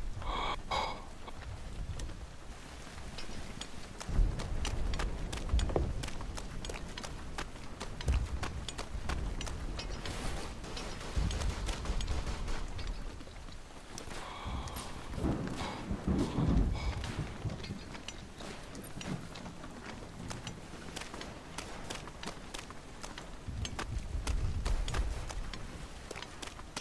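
Footsteps crunch over soft earth.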